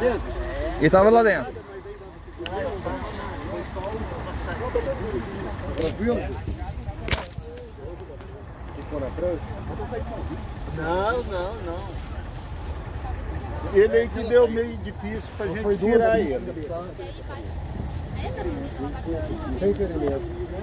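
Several men talk with urgency close by.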